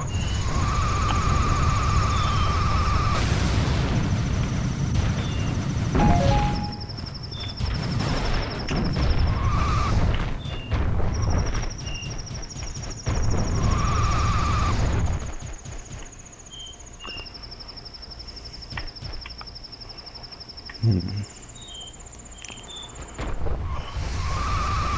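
A heavy ball rolls over snow with a loud, rushing rumble.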